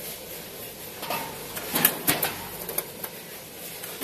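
Metal hopper gates of a multihead weigher clack open and shut.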